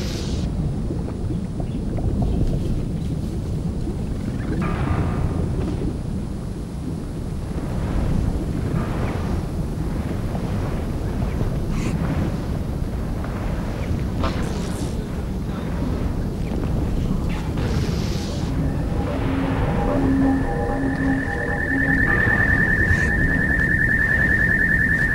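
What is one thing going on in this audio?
Lava rumbles with a deep, steady roar.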